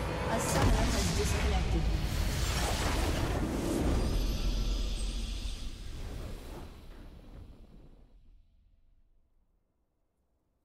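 A triumphant game fanfare plays loudly, then fades away into silence.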